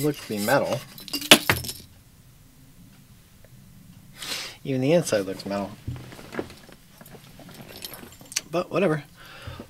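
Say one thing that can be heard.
A plastic bottle clicks and rattles in a man's hands.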